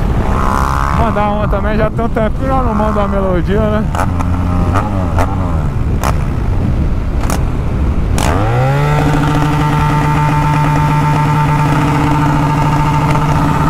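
A motorcycle engine revs up and down through the gears, then settles into a steady drone.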